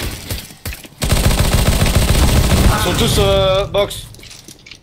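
A submachine gun fires rapid, loud bursts at close range.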